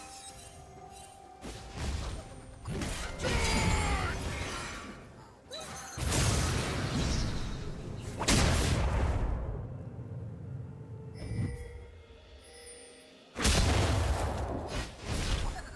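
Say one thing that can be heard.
Magic spells whoosh and burst in sudden loud blasts.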